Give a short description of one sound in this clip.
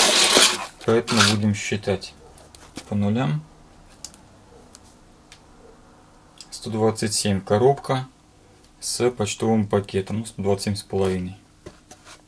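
Cardboard scrapes and thumps as a box is handled.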